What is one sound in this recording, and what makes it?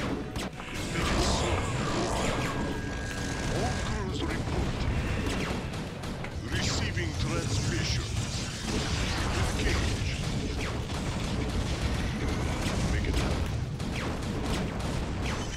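Game battle sounds of explosions and laser fire crackle.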